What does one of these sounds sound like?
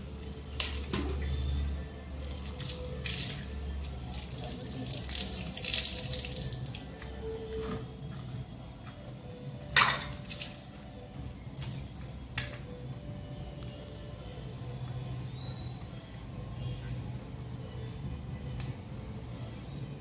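Water drips and trickles from wet hair onto the ground.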